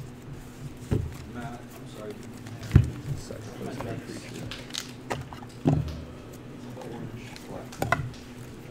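A plastic box clicks and knocks on a table.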